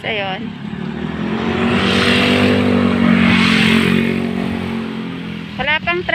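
A motorbike passes by on a road.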